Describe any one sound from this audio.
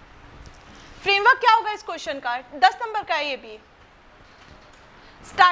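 A young woman speaks clearly.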